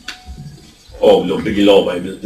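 A man speaks through a microphone into a room that echoes.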